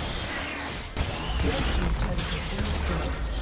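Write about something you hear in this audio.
A heavy blast booms as a tower is destroyed.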